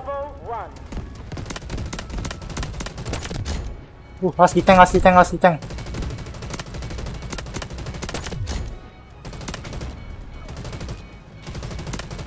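A heavy machine gun fires in rapid bursts.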